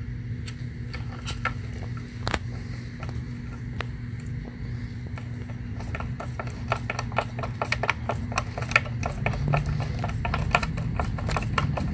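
A screwdriver squeaks and clicks as a screw is turned into plastic.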